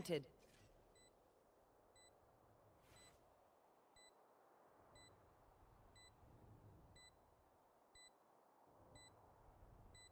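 A bomb beeps steadily, about once a second.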